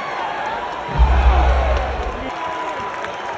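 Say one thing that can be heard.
A wrestler crashes heavily onto the ring mat with a loud thud.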